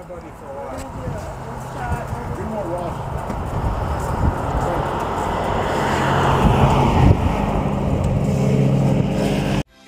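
A motorcycle engine idles with a steady rumble, growing louder.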